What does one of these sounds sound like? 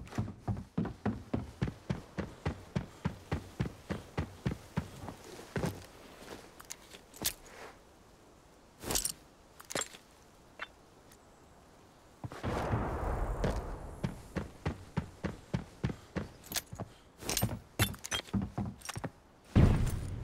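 Footsteps tap quickly and evenly across a hollow wooden floor.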